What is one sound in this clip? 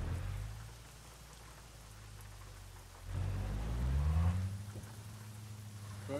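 A truck engine rumbles low and revs up, rising in pitch.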